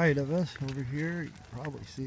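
A dog pants while trotting along.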